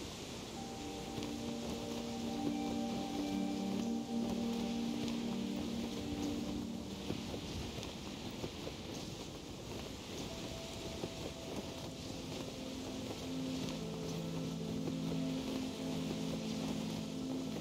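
A rushing wind current whooshes steadily upward.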